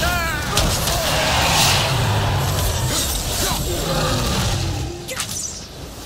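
Heavy blows thud and crash.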